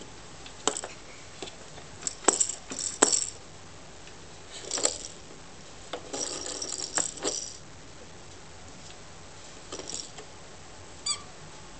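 Plastic toy parts clack and rattle as a baby plays with them.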